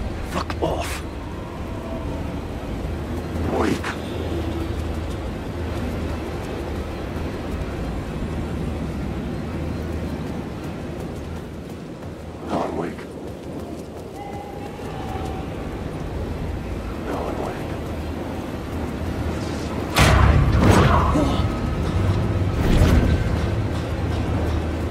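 Footsteps walk steadily over a hard, gritty floor.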